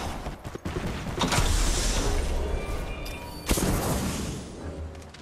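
Wind rushes loudly past as a character glides through the air.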